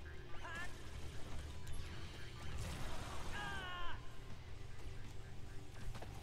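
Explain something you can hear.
Swords clash and blasts burst in a hectic fight.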